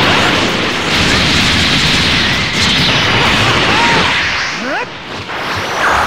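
A powering-up surge roars steadily and grows louder.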